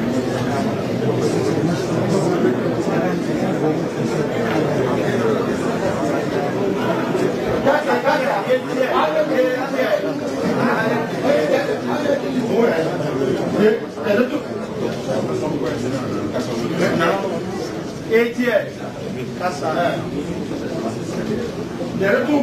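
A crowd of men and women murmurs and talks throughout, in an echoing hall.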